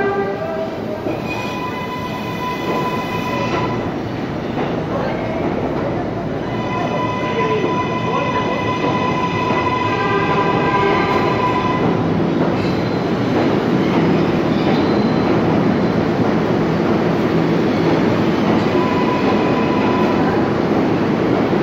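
Steel wheels of a subway train rumble and clatter along the rails.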